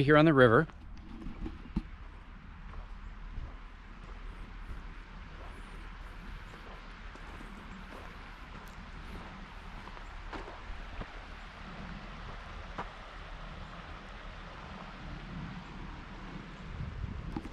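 A river flows steadily nearby.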